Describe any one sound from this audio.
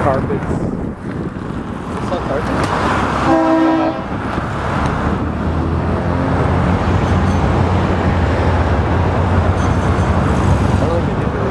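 Cars drive past on a busy road.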